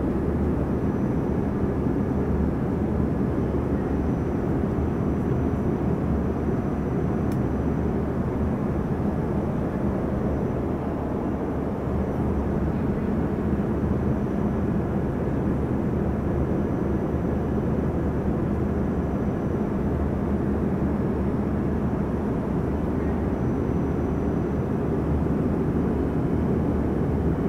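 A jet airliner's engines roar in a steady, low drone inside the cabin.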